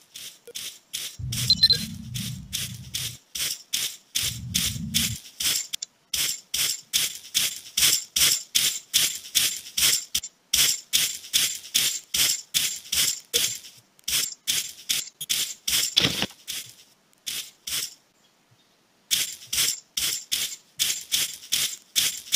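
Footsteps patter quickly in a steady rhythm.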